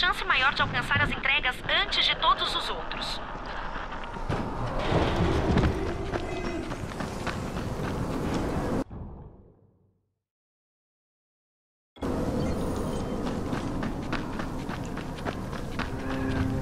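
Footsteps crunch over dirt and gravel.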